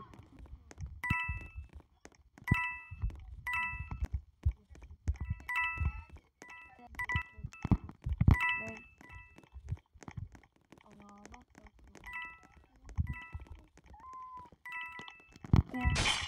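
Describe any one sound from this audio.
A game countdown beeps once a second.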